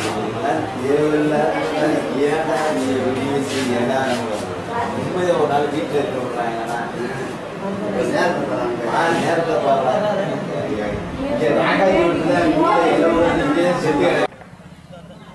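A young boy speaks weakly close by.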